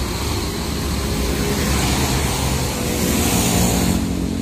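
A motorbike engine drones past.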